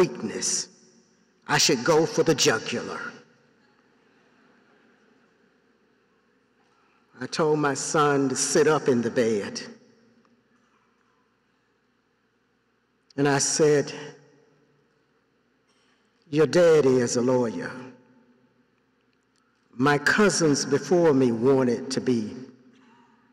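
An elderly man speaks slowly and deliberately through a microphone, in bursts with long pauses, echoing in a large hall.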